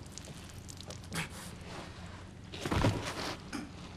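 A man gasps for breath.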